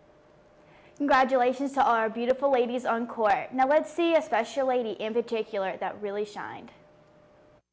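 A young woman speaks clearly and brightly into a close microphone.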